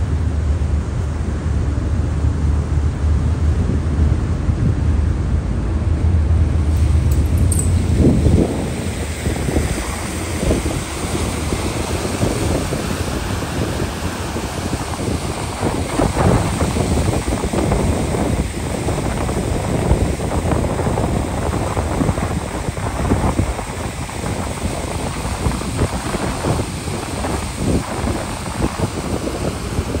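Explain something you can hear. A boat engine rumbles low and steadily.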